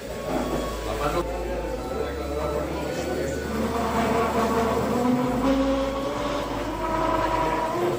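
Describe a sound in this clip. A hand tool scrapes against a spinning workpiece.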